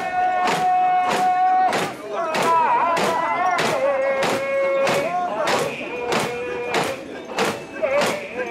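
A large crowd of men chants loudly in rhythm outdoors.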